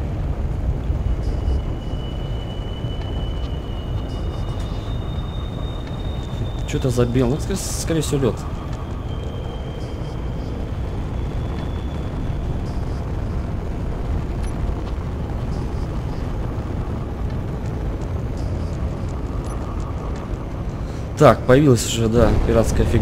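A spacecraft engine rumbles low and steadily.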